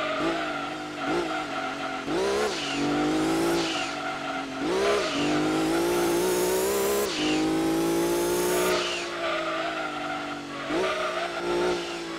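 A racing car engine revs high, rising and falling in pitch as gears shift.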